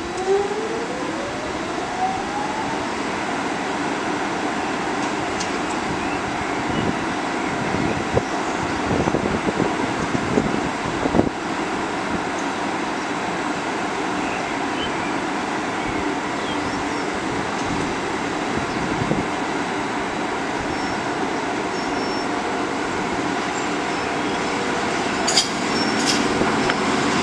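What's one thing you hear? An electric locomotive arrives slowly, its motors whining and wheels rumbling on the rails.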